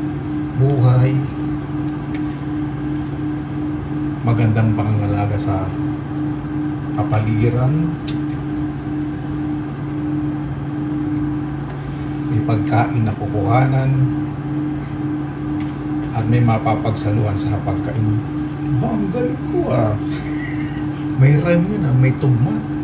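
Pieces of fish drop softly into a pot of broth.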